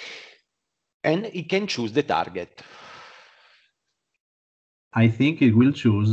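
A man talks calmly over an online call.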